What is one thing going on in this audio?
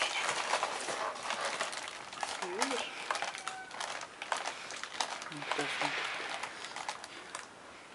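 A bear cub scratches and scrapes at a rough doormat.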